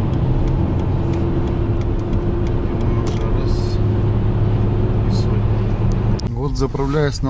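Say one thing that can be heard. A car's engine hums steadily while driving at speed.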